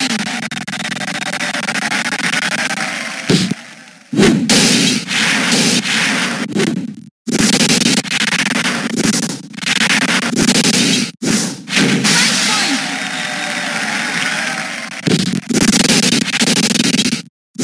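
Upbeat electronic game music plays.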